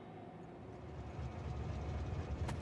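A train rumbles along a track, growing louder as it approaches.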